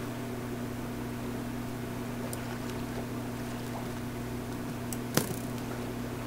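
Water splashes as a video game character swims.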